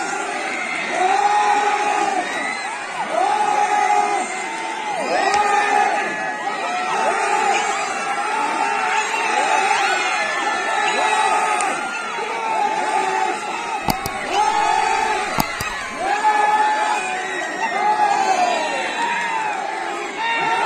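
A crowd of men and women cheers and shouts loudly outdoors.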